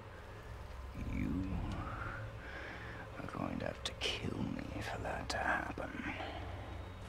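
A younger man speaks tensely and urgently close by.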